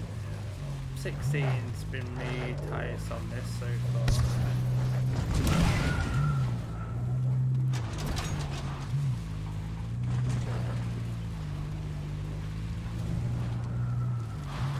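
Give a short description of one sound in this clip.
A car engine drones steadily, its pitch dipping and rising with gear changes.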